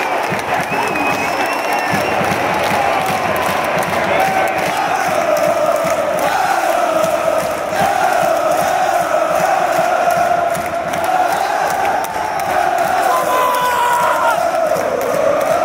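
A large stadium crowd sings loudly together.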